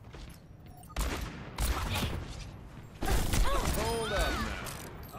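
A revolver fires sharp shots in quick bursts.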